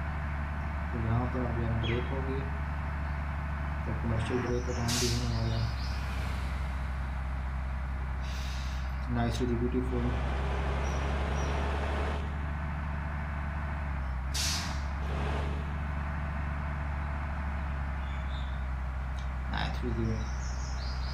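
A young man speaks briefly in short bursts, close to a microphone.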